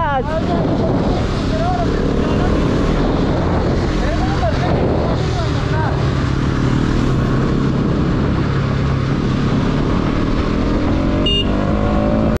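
A motorcycle engine hums and revs steadily while riding.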